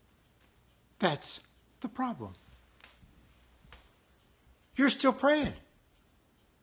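An older man speaks close to a microphone in short, emphatic bursts.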